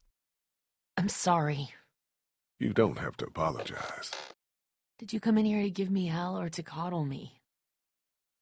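A young woman speaks anxiously and close by.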